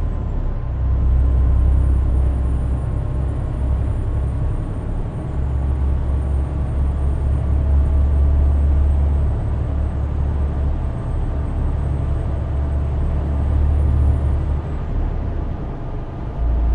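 A truck's diesel engine drones steadily from inside the cab.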